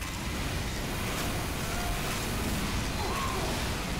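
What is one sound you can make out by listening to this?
A flamethrower roars.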